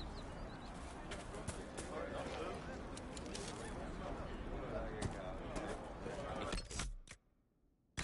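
Footsteps tread on grass and soil.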